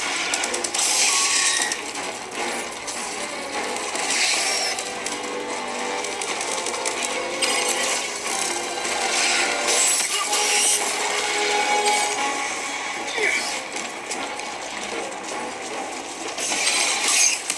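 Gunfire crackles from a video game through small built-in speakers.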